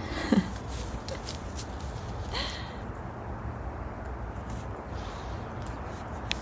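A small dog's paws crunch softly on snow.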